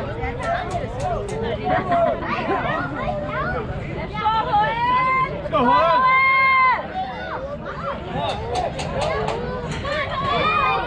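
Children and adults shout and cheer loudly outdoors.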